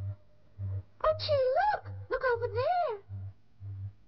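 A young woman cries out in alarm.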